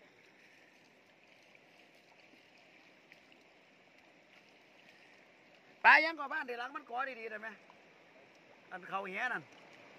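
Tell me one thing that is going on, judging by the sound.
Water splashes softly as hands rinse fish.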